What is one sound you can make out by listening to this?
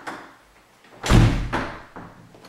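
A door shuts with a heavy thud.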